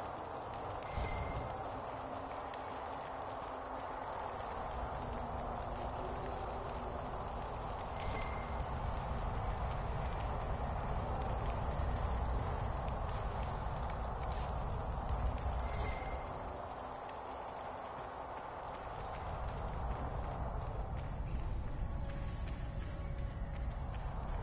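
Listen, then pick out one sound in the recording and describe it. Footsteps scuff across a stone floor.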